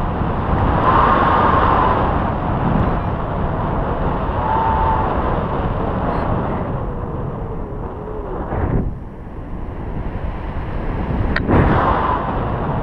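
Wind rushes loudly past a microphone outdoors.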